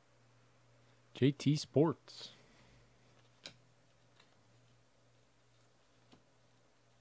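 Trading cards click and rustle softly as hands sort through them.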